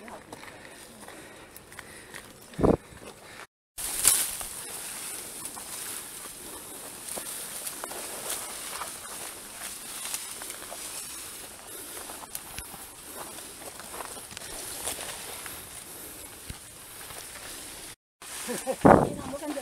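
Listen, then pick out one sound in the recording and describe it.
Footsteps crunch and shuffle on a rocky trail.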